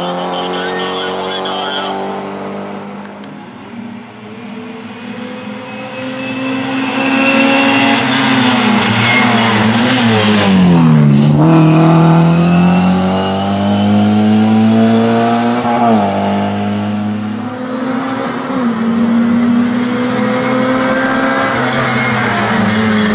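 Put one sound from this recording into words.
A racing car engine roars and revs hard.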